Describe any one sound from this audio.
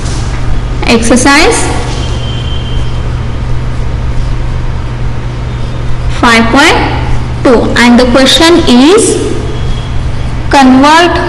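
A woman speaks slowly and clearly in short phrases, with pauses between them.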